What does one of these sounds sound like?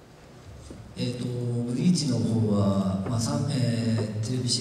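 A man speaks with animation into a microphone over loudspeakers in a large hall.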